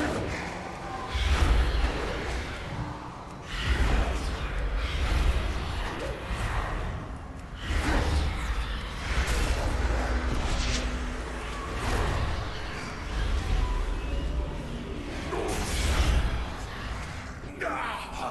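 Game weapons strike and spells burst in a fight.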